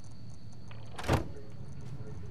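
A keypad button clicks once.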